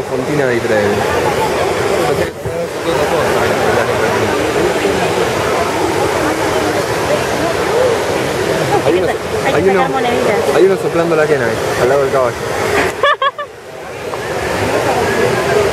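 Water splashes and rushes from a fountain.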